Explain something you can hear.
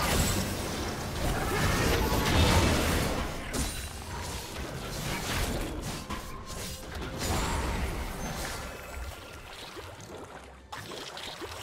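Fantasy battle sound effects crackle, whoosh and clash rapidly.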